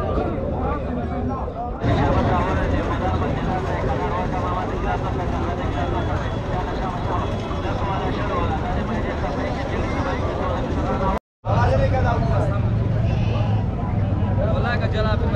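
A large outdoor crowd of men chatters all around.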